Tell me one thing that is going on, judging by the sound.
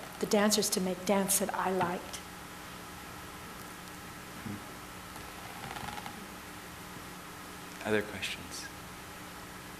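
A middle-aged woman speaks calmly into a microphone in a large room.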